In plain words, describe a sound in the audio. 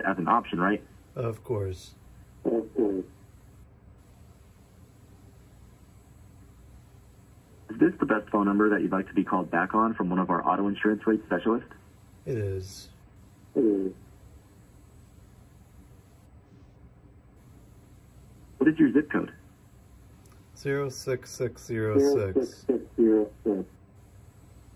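A man speaks through a telephone's speaker in bursts, with pauses between.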